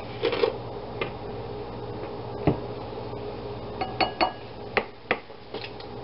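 A metal spoon scrapes and taps against a glass bowl.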